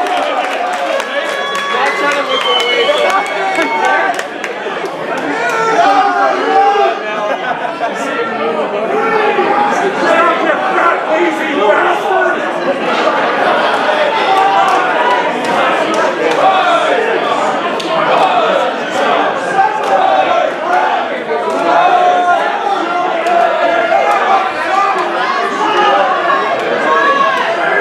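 A crowd of people chatter and shout in a large echoing hall.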